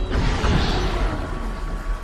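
Bats flutter and screech.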